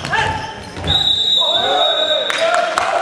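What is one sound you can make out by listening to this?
A referee's whistle blows a short, sharp blast.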